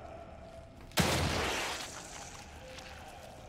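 A gunshot bangs loudly and echoes briefly.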